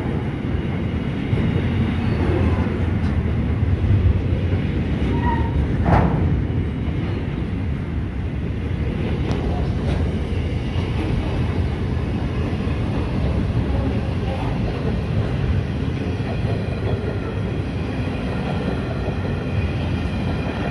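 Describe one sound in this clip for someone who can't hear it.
A long freight train rumbles steadily past close by.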